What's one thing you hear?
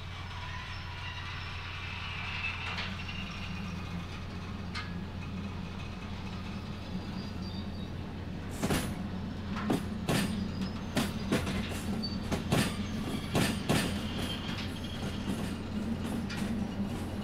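A rail vehicle's engine hums steadily.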